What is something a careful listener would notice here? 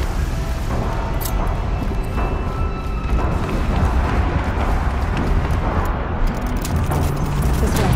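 Footsteps thud quickly on wooden boards.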